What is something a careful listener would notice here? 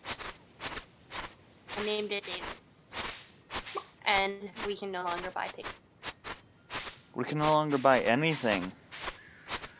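A scythe swishes repeatedly through tall grass.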